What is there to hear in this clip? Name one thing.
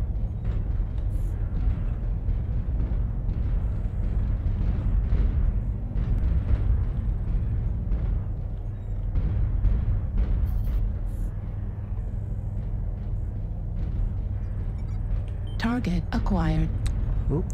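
A heavy walking machine rumbles low and steady.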